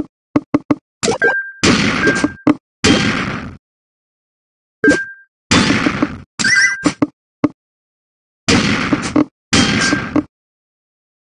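Electronic game sound effects burst out in short, noisy clusters as lines clear.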